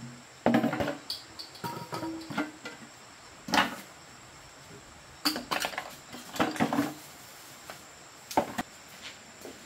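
Tin cans clink and clatter against each other in a plastic tub.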